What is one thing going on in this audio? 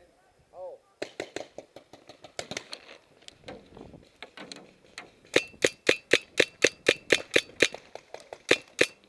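A paintball gun fires rapid bursts of sharp pops close by.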